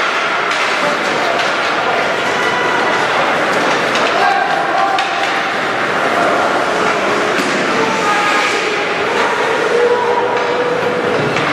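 A crowd of spectators shouts and cheers in a large echoing rink.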